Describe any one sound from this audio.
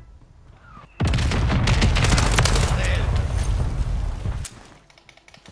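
Rapid gunfire rattles loudly and close by.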